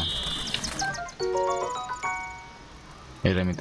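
A short rising chime jingle plays.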